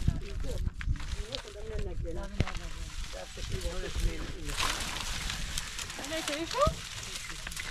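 Women talk with each other nearby, outdoors.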